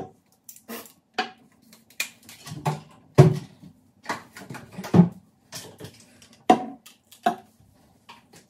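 Glass and plastic bottles knock down onto a hard countertop.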